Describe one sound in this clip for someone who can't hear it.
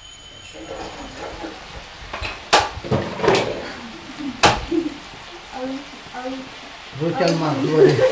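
A metal spatula clanks against a wok.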